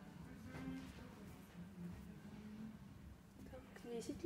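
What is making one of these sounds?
Knitted sweaters rustle softly as hands lay them down.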